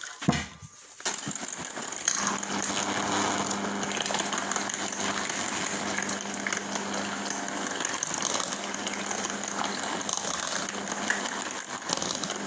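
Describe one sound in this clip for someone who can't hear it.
An electric hand mixer whirs steadily as it beats in a metal bowl.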